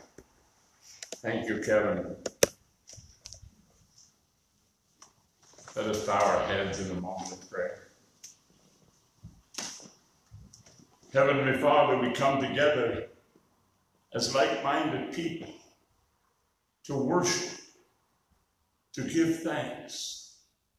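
An elderly man speaks calmly into a microphone, with pauses between phrases, in a room with some echo.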